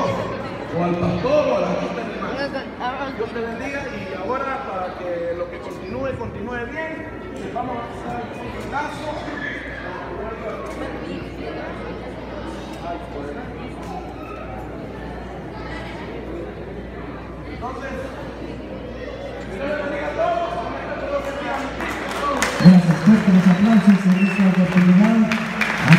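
A large crowd of men and women chatters in an echoing hall.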